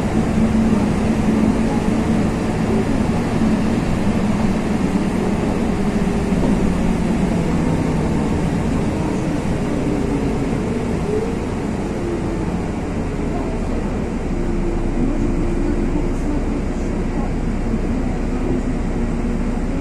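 A car engine hums steadily close by.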